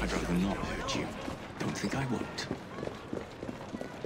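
A horse-drawn carriage rolls over cobblestones.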